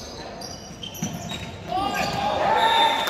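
A volleyball is hit with a sharp slap.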